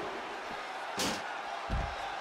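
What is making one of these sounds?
A body slams hard onto a floor.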